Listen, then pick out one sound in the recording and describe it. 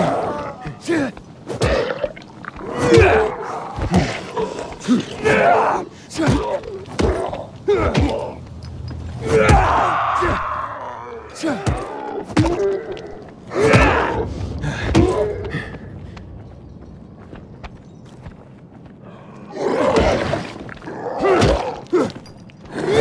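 Heavy blows thud and squelch into flesh.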